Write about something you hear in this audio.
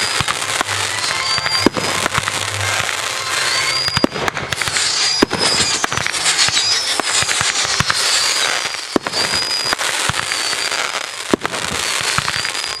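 Fireworks crackle and fizz steadily.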